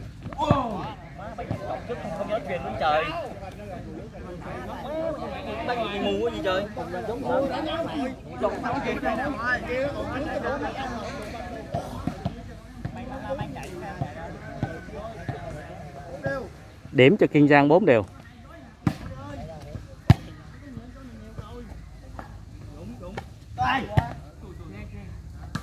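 A crowd of young men and women chatter and call out loudly outdoors.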